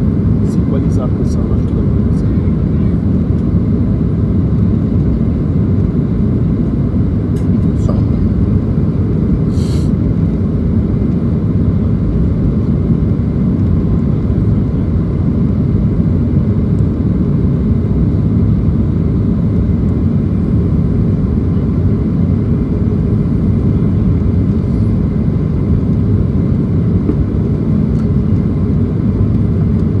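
Jet engines roar steadily and deeply inside an airliner cabin in flight.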